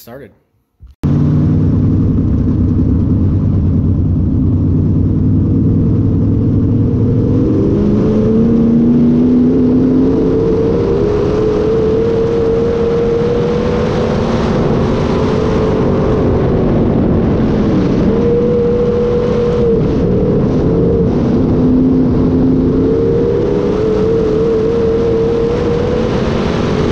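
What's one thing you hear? A race car engine roars loudly, revving up and down.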